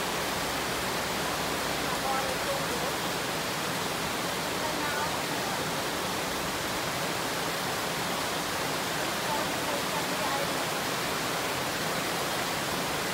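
A stream rushes over shallow rocky rapids.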